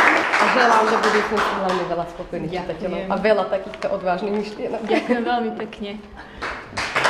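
Two women talk warmly up close.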